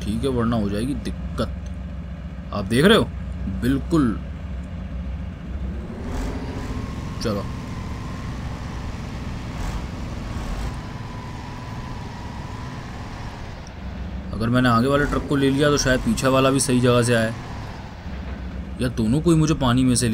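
A heavy truck engine rumbles steadily at low speed.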